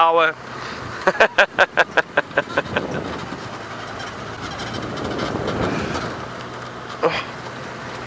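An open vehicle's engine rumbles steadily as it drives along a bumpy dirt track.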